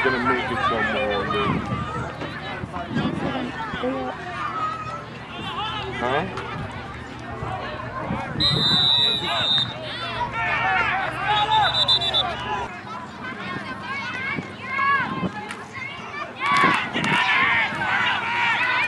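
Young players and adult men shout and call out outdoors.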